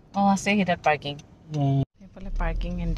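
A woman speaks close by.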